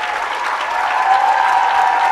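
Many people clap their hands.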